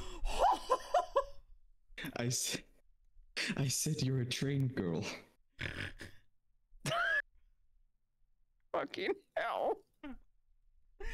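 A young woman talks with animation into a close microphone, in short bursts.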